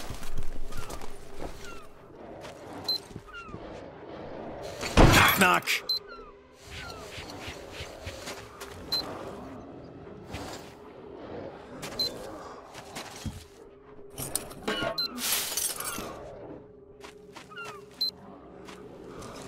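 Footsteps crunch on rubble and broken tiles.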